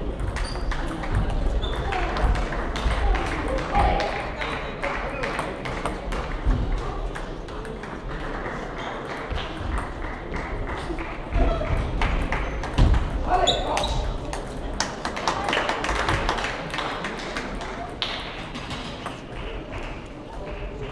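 Many people murmur in the background of a large hall.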